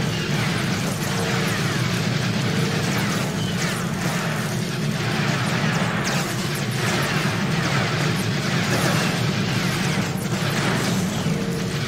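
Game explosions boom.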